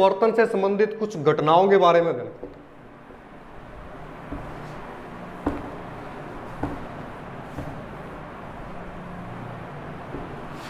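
A cloth duster rubs and squeaks across a whiteboard.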